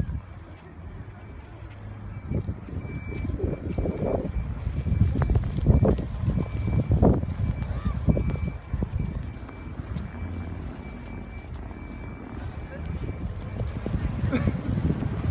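Strong wind roars and gusts outdoors.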